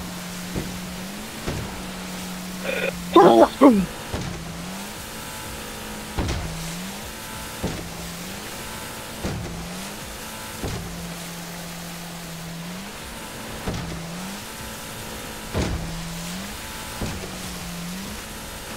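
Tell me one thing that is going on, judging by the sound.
A speedboat engine drones steadily and revs up again and again.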